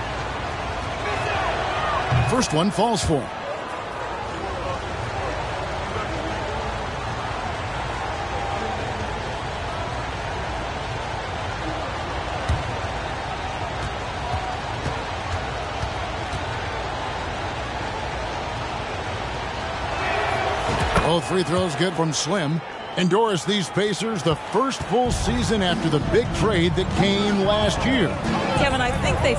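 A large crowd murmurs and cheers.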